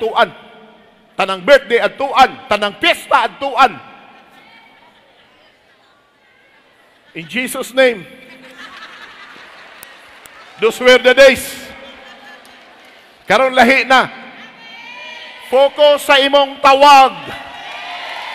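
A middle-aged man shouts with passion through a microphone and loudspeakers in a large echoing hall.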